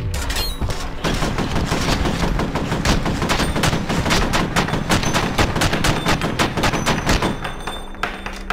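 A rifle fires in rapid bursts, echoing in a narrow space.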